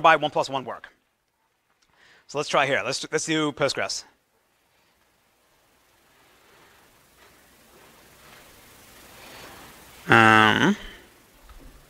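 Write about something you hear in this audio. A man lectures through a microphone.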